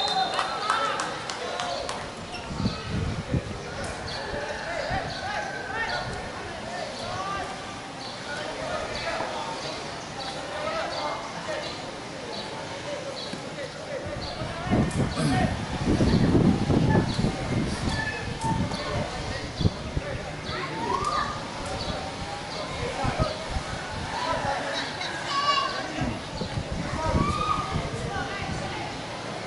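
Young men shout to each other from a distance across an open field.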